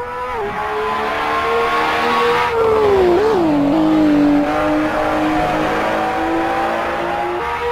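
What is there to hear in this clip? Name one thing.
A racing car engine roars loudly, its pitch dropping and rising as the driver shifts gears.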